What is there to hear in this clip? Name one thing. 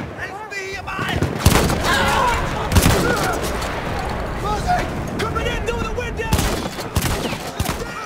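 Gunshots crack in sharp, loud bursts.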